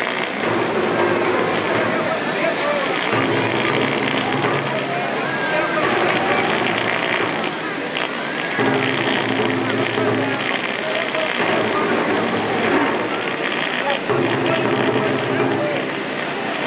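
A large crowd chatters and murmurs.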